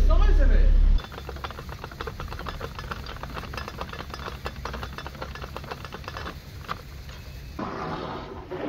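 A metal ratchet clicks rapidly as a lock paddle is wound.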